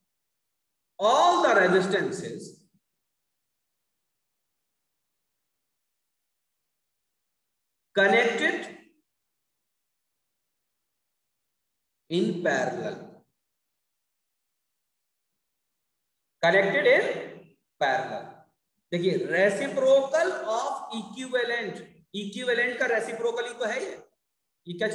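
A man speaks calmly into a microphone, explaining slowly with pauses.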